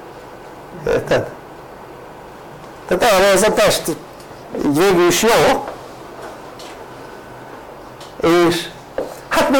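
An elderly man speaks calmly in short phrases, close by.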